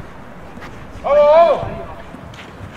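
A young man shouts loudly across an open field.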